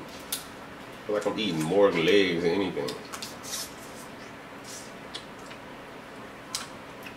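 Crab shells crack and crunch as they are broken open by hand.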